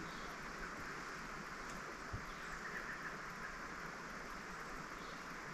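Wind rustles leaves in the trees outdoors.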